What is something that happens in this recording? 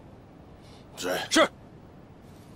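A man answers briefly and firmly.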